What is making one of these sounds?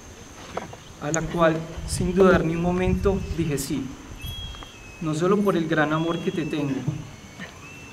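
A young man speaks calmly into a microphone outdoors.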